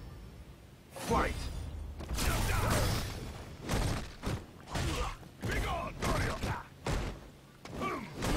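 Punches and kicks land with sharp, heavy thuds in a fight.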